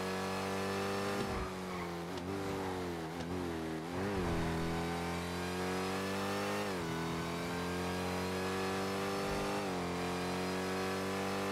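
A car engine roars steadily at high revs, dropping in pitch briefly as gears shift.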